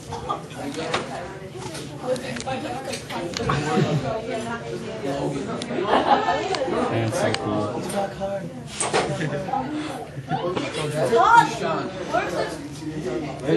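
Several teenagers talk and chatter over one another nearby.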